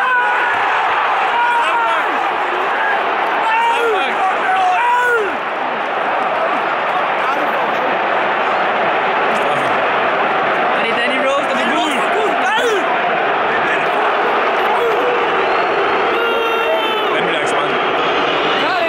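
A young man talks excitedly close by.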